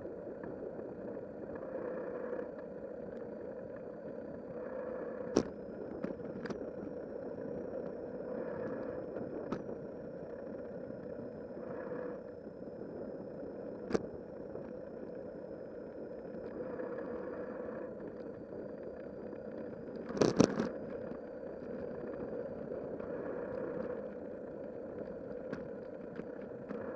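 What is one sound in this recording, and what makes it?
Bicycle tyres hum steadily on smooth pavement.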